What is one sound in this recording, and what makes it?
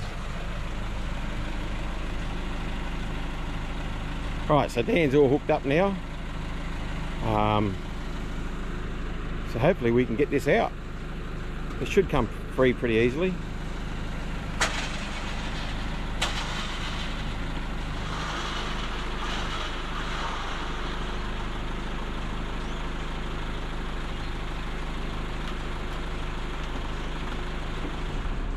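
A diesel truck engine idles with a steady low rumble.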